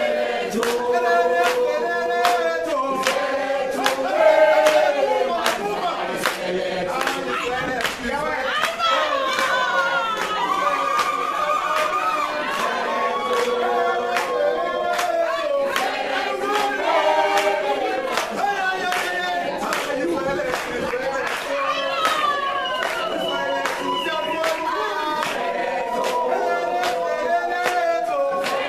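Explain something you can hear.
Hands clap in a steady rhythm.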